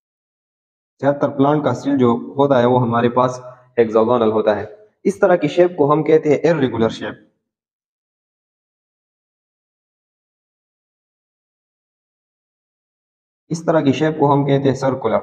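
A man speaks calmly through a close microphone, explaining.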